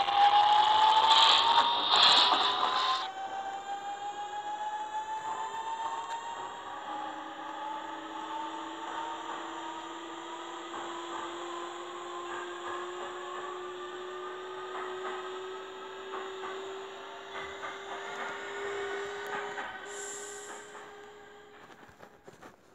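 Train wheels rumble and clatter over the rails.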